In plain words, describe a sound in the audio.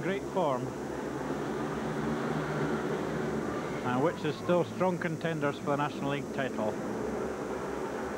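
Racing motorcycle engines drone from across an open track, rising and falling in pitch.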